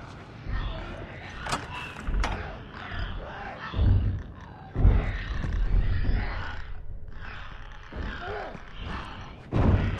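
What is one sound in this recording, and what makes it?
Footsteps creak on a wooden floor.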